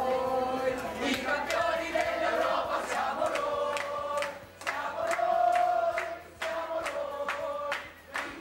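A woman claps her hands in rhythm.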